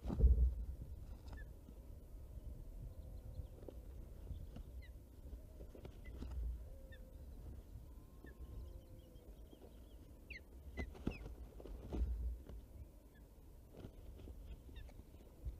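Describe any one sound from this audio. Twigs rustle and knock as an osprey shifts sticks in its nest.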